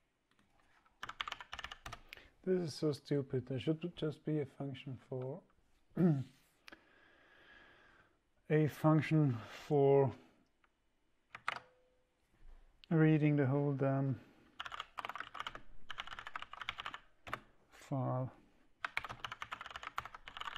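Keyboard keys clatter in quick bursts.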